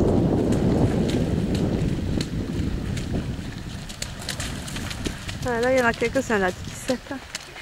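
Runners' feet splash through shallow water.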